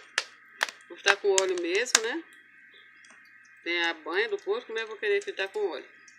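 Oil trickles into a metal pan.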